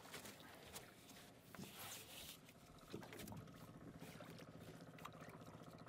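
A fishing net rustles and scrapes against a boat's side as it is hauled in.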